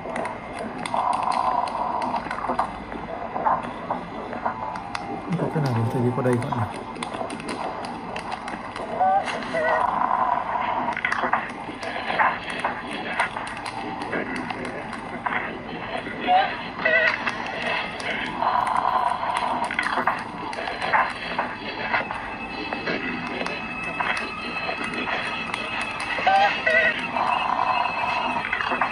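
Fingertips tap and slide on a tablet's glass.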